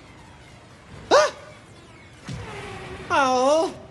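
Electric zaps crackle in sharp bursts.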